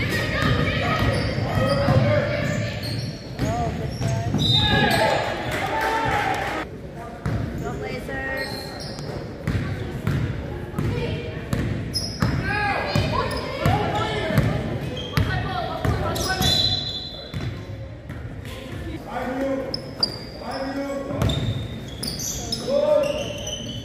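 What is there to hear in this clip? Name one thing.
A basketball bounces on the floor with dull thuds.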